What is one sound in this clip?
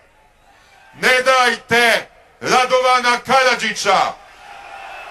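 A middle-aged man shouts passionately into a microphone, heard through loudspeakers.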